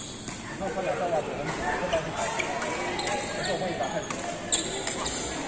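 Badminton rackets strike shuttlecocks in a large echoing hall.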